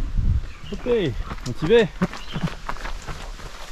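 Footsteps thud on a dirt trail.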